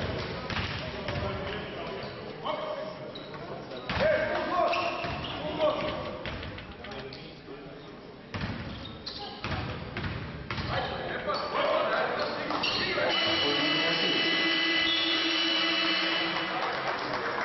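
A crowd murmurs and cheers in an echoing hall.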